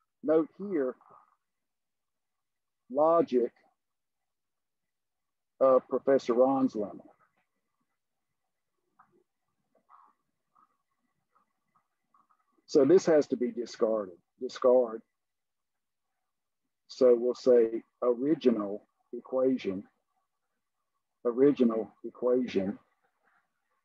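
An elderly man speaks calmly over an online call, in short phrases with pauses.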